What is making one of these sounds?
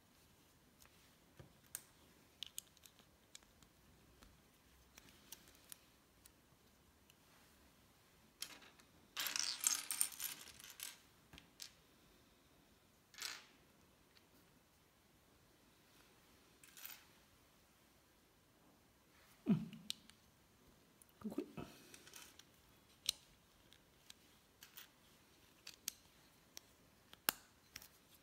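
Plastic bricks click and rattle as hands fit them together.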